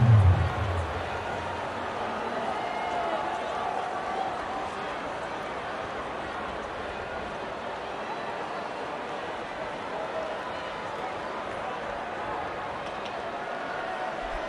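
A large crowd murmurs steadily in an open stadium.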